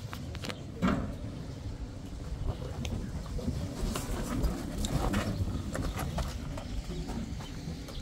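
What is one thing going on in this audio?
A wheelbarrow rattles as it rolls over stony ground.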